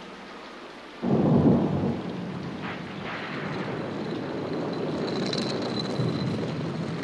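A stone hand mill grinds with a low, steady rumble.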